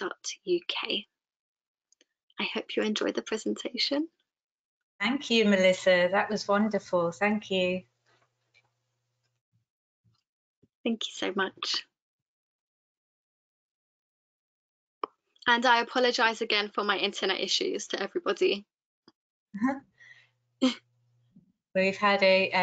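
A young woman speaks calmly through a headset microphone on an online call, with pauses.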